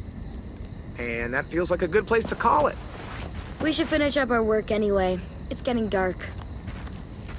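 A boy speaks calmly, close by.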